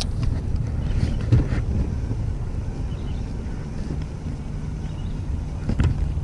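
A fishing reel whirs as the line is wound in.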